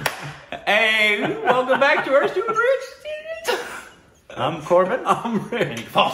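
A middle-aged man laughs heartily close by.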